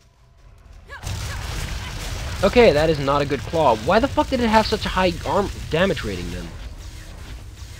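Fire spells crackle and burst in a fight.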